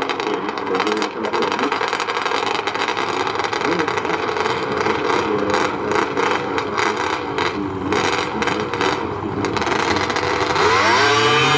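Snowmobile engines idle and rumble loudly.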